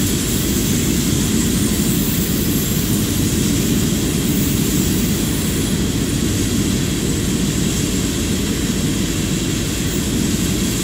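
Train wheels clatter and roll over the rails.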